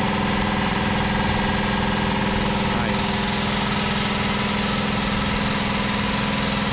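An air compressor motor runs with a loud, steady, rapid chugging hum.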